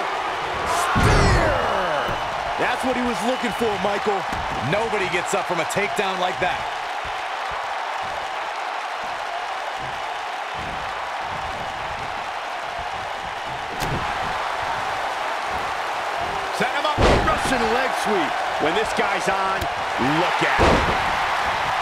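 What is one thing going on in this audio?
Heavy bodies slam hard onto a wrestling ring mat.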